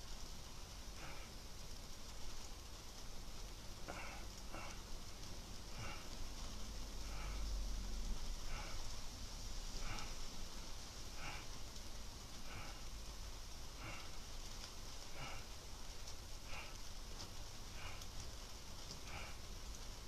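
A person breathes out hard in a steady rhythm, close by.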